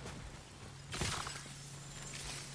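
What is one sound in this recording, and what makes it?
A gunshot cracks once.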